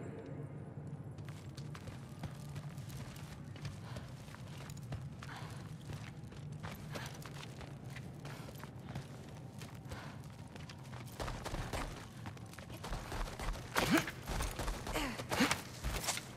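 Footsteps crunch over snow and stone.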